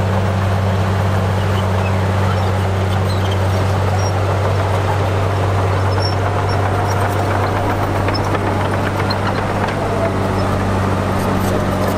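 A bulldozer engine rumbles steadily nearby.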